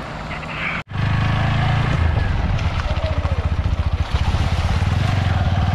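A motorcycle engine runs up close as it rides along.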